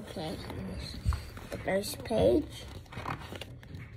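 A book's pages rustle and flap.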